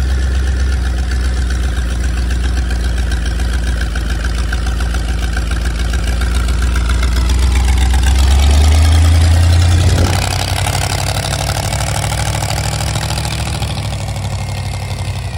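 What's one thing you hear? A big engine idles with a loud, deep, lumpy rumble close by.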